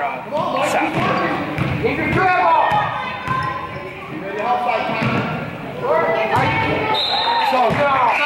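Boys shout to each other in an echoing gym.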